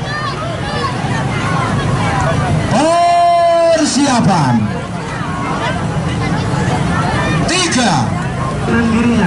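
A large crowd of children chatters and shouts outdoors.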